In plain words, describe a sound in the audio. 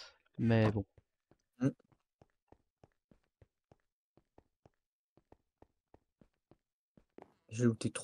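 Footsteps tap steadily over stone and grass.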